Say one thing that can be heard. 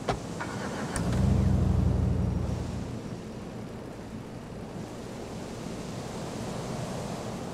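A car engine starts and rumbles as the car drives away.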